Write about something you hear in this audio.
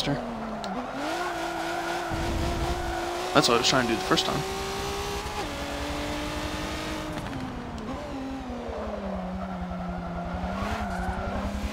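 Tyres squeal on asphalt through the corners.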